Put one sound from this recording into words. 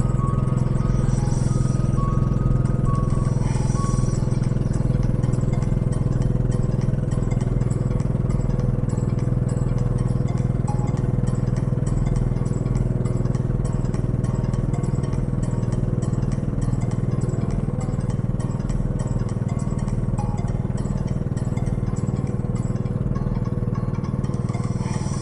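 A boat engine drones steadily and low throughout.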